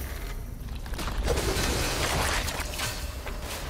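A creature bursts with a splash.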